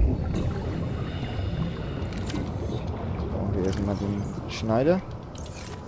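Water bubbles and rumbles underwater.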